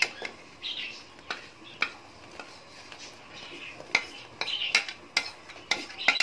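Crumbly food drops into boiling water with soft splashes.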